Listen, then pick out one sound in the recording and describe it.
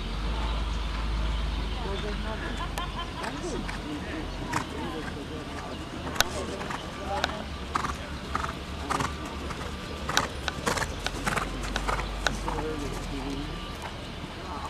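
Horse hooves thud on soft dirt.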